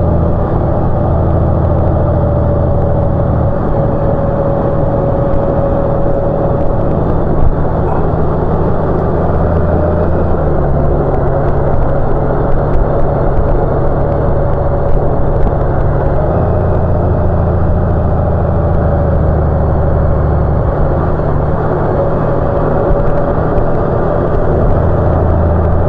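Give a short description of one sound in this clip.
Wind rushes past a rider's helmet.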